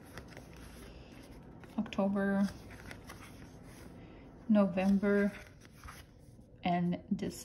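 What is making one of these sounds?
Stiff paper pages rustle as they are flipped.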